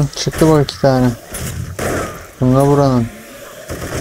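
A zombie growls and snarls close by.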